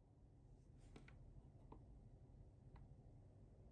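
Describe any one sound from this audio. A switch knob clicks as it is turned.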